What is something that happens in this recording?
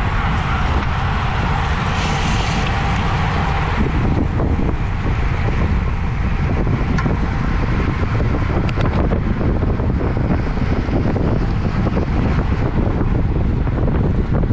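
Bicycle tyres hum on pavement.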